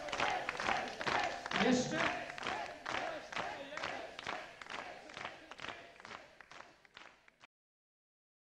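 An audience claps and cheers in a large hall, then the applause fades away.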